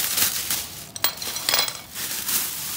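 Metal tools clatter onto a hard floor.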